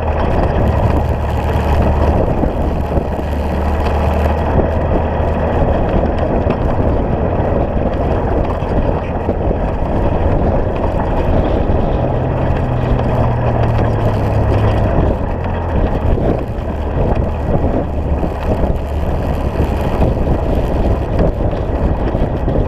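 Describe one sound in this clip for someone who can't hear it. Tyres crunch and rumble over loose gravel.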